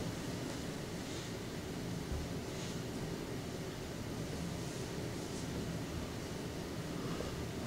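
A marker squeaks and scratches softly on a whiteboard.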